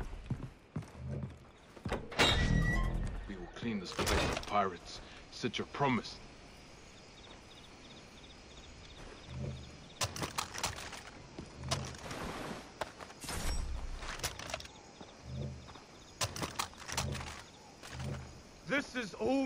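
Footsteps thud slowly on gravel.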